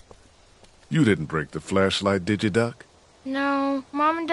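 A man speaks in a low, surprised voice, close by.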